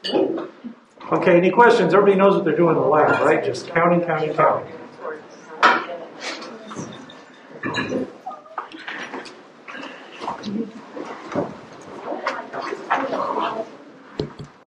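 A man talks close by, calmly explaining.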